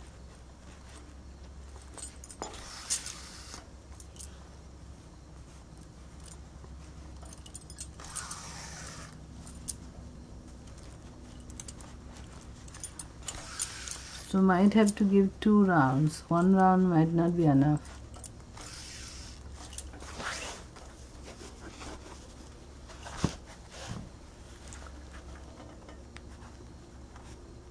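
Glass bangles clink softly on a moving wrist.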